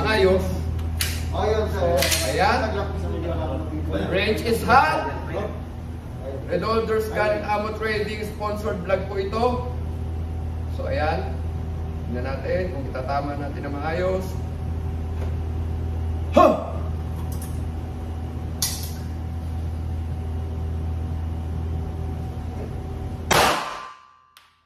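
Gunshots crack sharply at intervals, ringing in an enclosed room.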